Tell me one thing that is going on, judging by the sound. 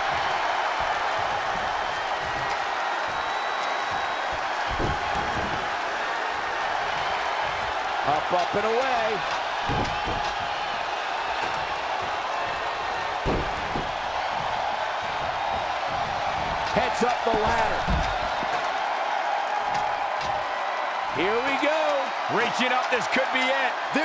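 A large crowd cheers and roars steadily in a big arena.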